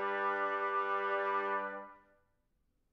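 A brass ensemble holds a final chord in a reverberant hall.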